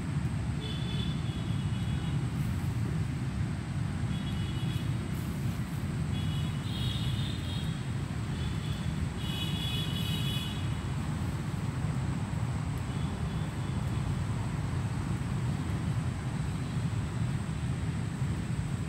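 Traffic rumbles steadily in the distance.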